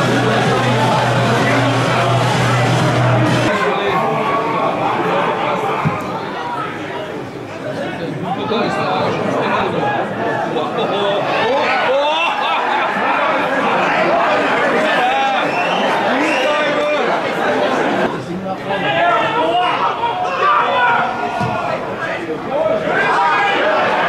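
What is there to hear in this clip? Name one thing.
Spectators chatter and call out nearby, outdoors.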